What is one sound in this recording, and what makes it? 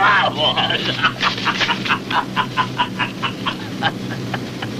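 An elderly man laughs heartily.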